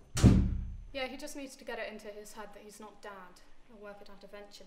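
A young woman talks calmly into a phone.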